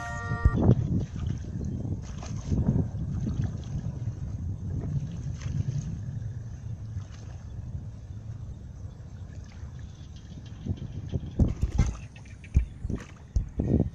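Water splashes and sloshes as children wade through shallow water.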